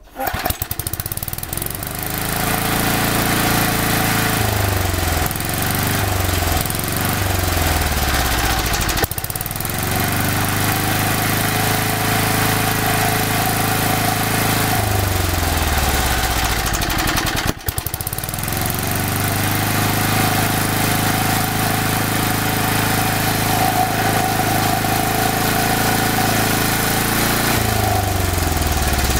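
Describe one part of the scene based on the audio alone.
A petrol lawn mower engine runs loudly close by, its pitch rising and falling.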